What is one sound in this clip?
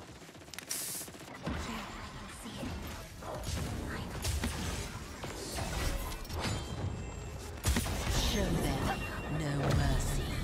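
Gunshots and blasts ring out from a video game.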